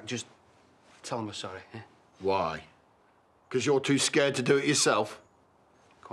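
A man speaks tensely nearby.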